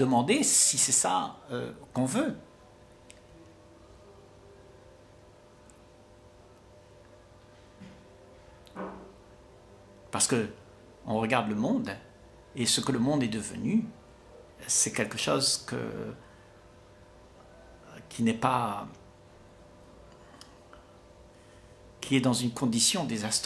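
An elderly man speaks calmly and warmly in short phrases, heard close through a microphone.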